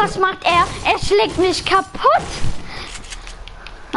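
A pickaxe strikes a wall with dull thuds.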